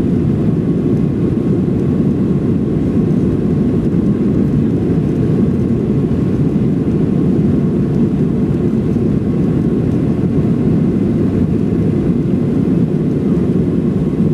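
A jet engine roars steadily with a deep rumble.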